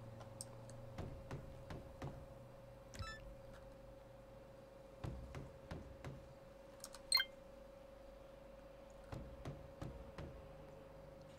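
Knuckles knock on a wooden door in short bursts of several raps.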